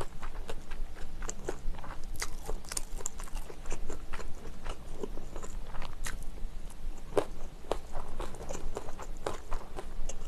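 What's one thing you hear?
A fork clinks and scrapes on a glass bowl.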